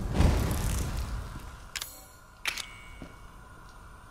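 A gas burner hisses steadily.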